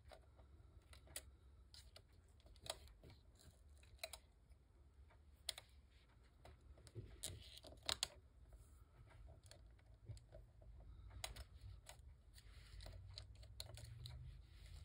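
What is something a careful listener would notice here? Hands rub and press on a paper tag with soft rustling and light taps.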